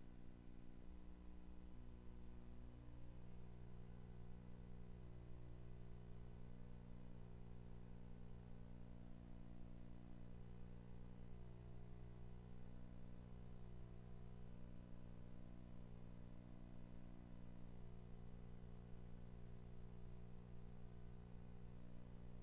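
Synthesized arcade game music plays with steady, droning low tones.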